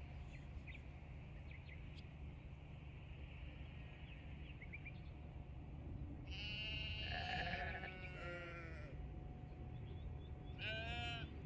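Wind rumbles across an open field.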